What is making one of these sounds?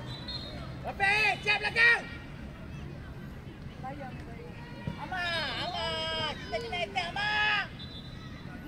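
Children shout loudly across an open playing field.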